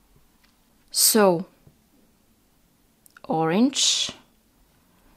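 A thread zips and squeaks as it is pulled quickly through small beads.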